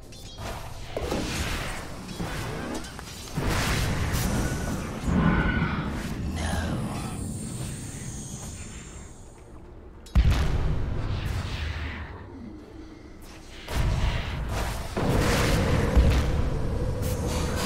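Game characters' weapons clash and strike.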